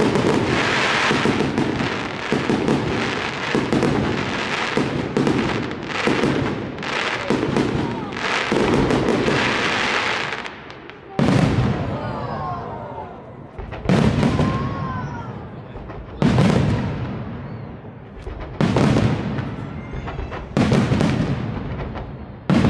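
Fireworks burst overhead with loud booms and crackles.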